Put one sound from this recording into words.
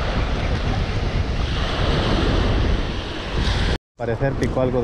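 Waves break and wash up on a shore close by.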